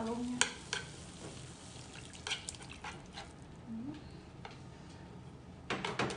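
Water pours into a hot pan and sizzles.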